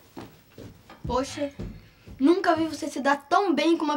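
A boy speaks calmly and close by.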